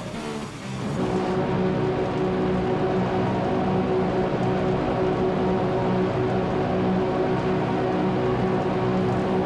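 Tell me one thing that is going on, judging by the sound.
A racing car engine holds a steady, even drone at low speed.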